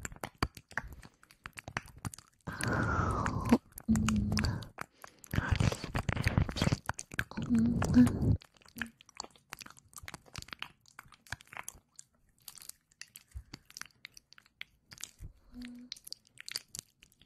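Soft clicks and taps crackle close to a microphone.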